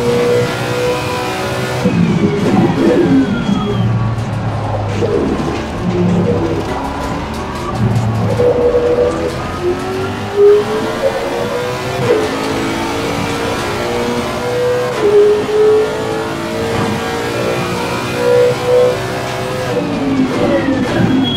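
A racing car engine roars, its pitch dropping as it slows for corners and rising as it speeds up.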